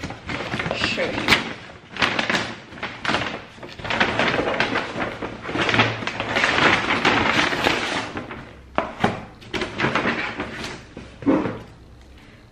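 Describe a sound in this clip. A paper bag rustles and crinkles loudly close by.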